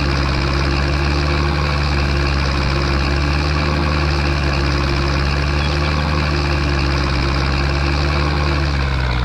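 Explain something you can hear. A trailer rattles as it is towed over grass.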